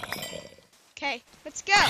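A zombie groans in a low, rasping voice.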